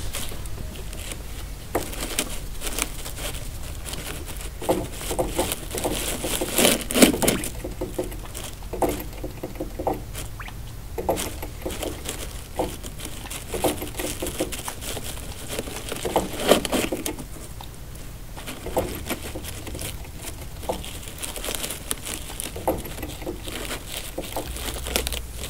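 A guinea pig munches and crunches dry hay up close.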